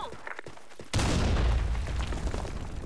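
A gunshot cracks nearby.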